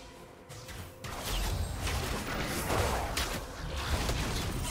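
Magic spell effects whoosh and crackle in a video game.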